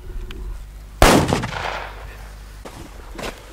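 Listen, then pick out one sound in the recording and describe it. A loud blast booms outdoors and rumbles away.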